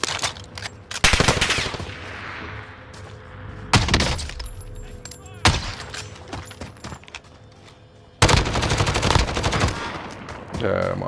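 Gunshots crack in loud, echoing bursts.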